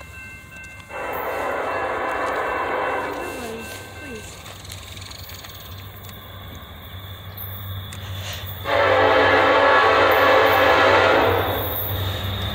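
A train horn blares loudly in long blasts.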